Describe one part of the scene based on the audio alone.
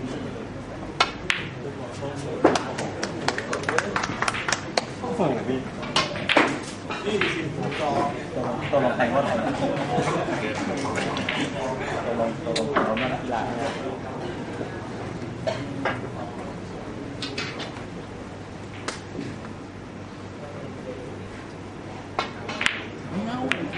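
A cue strikes a ball with a sharp tap.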